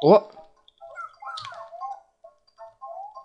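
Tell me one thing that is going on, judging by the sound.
Short bright chiming sound effects pop as enemies are knocked away.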